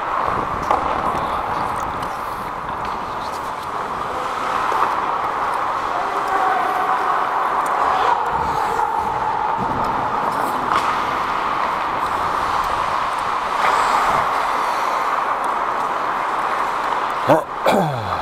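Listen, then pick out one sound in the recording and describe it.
Ice skates scrape and hiss across the ice throughout.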